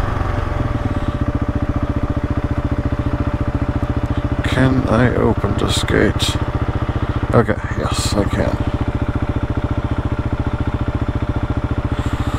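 A motorcycle engine idles with a steady, rapid putter.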